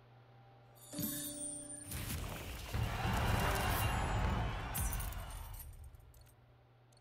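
A game's reward sound swooshes loudly and then fades.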